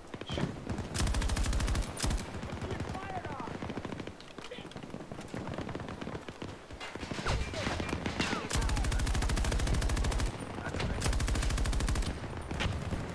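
A machine gun fires in rapid bursts close by.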